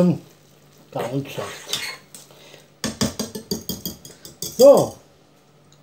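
A whisk clatters and scrapes against a metal pot.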